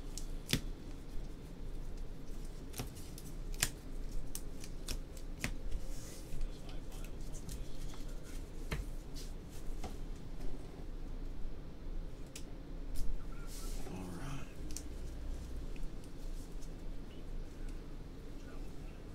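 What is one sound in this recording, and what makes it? Cards and plastic wrappers rustle and click as they are handled.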